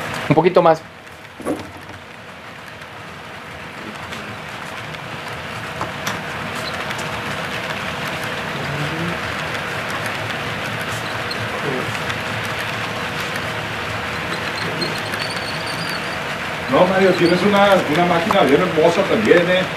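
A model train rumbles along the track, growing louder as it approaches.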